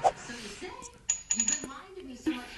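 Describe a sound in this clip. Coins chime as they are collected.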